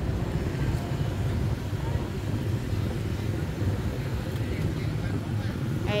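Motor scooters pass along a street.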